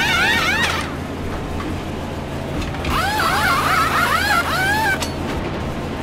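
An air wrench whirs in quick rising bursts.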